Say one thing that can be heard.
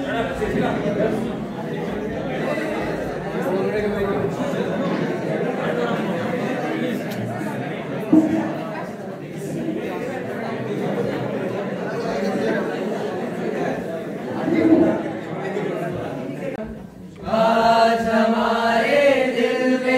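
A group of men sing together.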